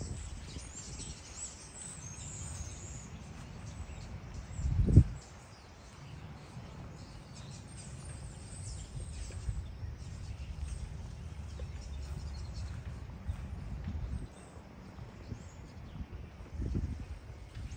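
Wind rumbles outdoors in gusts.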